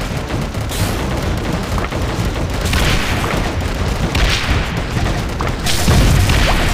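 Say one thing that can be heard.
Game turrets fire rapid shots.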